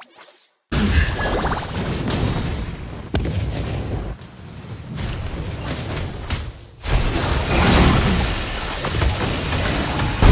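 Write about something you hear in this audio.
Spell blasts and sword hits crash and whoosh in quick bursts.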